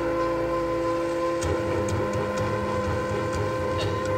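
A conch shell is blown in a long, steady, loud horn-like tone.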